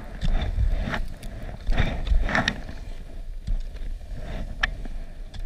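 Skis scrape and hiss over packed snow.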